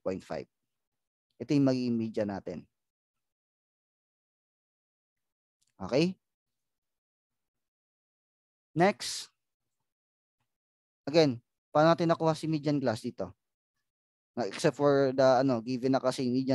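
A man explains calmly into a close microphone, with pauses.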